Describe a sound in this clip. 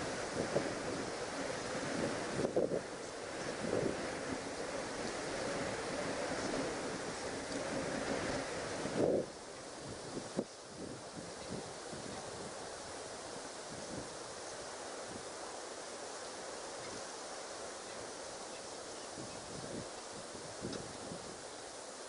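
A leopard laps water softly and steadily.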